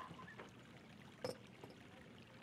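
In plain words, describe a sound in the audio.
A porcelain jug clinks softly on a table.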